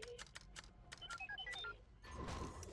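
A small robot chirps a quick run of electronic beeps.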